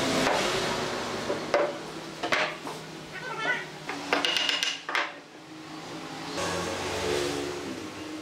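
Wooden pieces knock together on a workbench.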